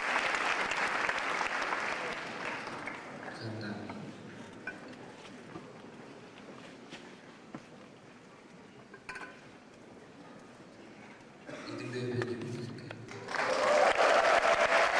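An audience applauds and cheers in an echoing hall.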